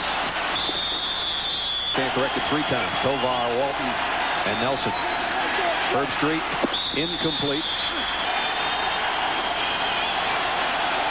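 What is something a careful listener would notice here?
A large crowd cheers and roars in a big stadium.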